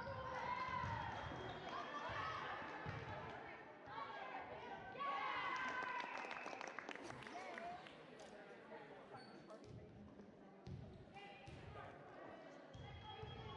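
A crowd of spectators cheers and shouts in a large echoing gym.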